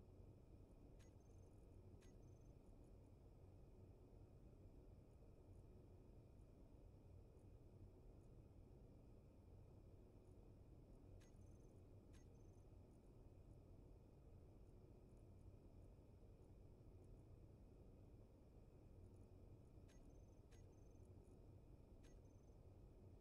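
Short, faint electronic clicks sound now and then.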